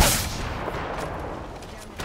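Gunshots fire in rapid bursts with explosive impacts.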